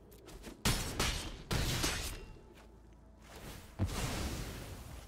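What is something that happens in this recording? Heavy impact thuds from a game land in quick succession.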